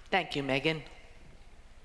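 A young woman cries out loudly.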